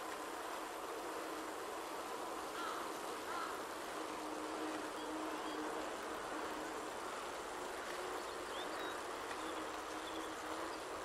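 A bicycle whirs steadily along a smooth road.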